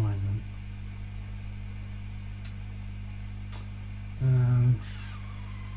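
An electric guitar sounds brief notes through an amplifier.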